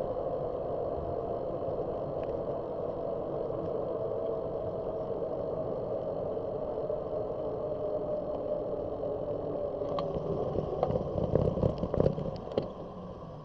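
A car drives along a road, its engine and tyres humming steadily.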